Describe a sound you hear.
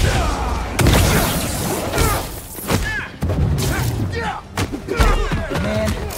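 Punches and electric blasts hit hard in a video game fight.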